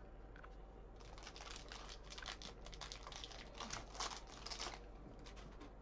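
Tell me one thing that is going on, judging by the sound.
A foil wrapper crinkles and tears open close by.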